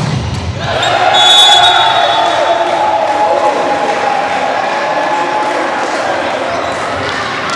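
A crowd cheers loudly in an echoing hall.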